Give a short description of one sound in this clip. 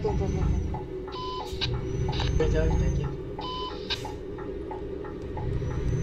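A truck's indicator ticks.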